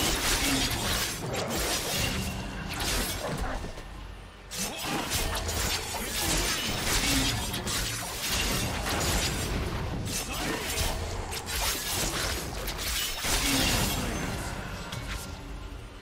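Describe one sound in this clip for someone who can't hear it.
Sharp hits and impacts land one after another.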